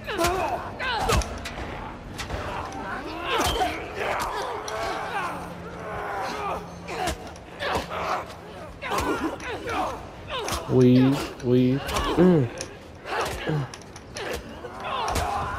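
A young man grunts with effort.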